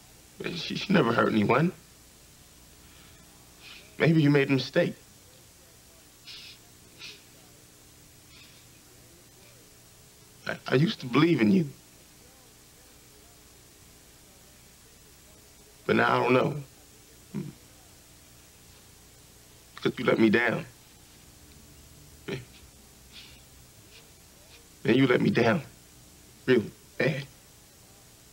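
A young man speaks in short, tense bursts nearby, with pauses between.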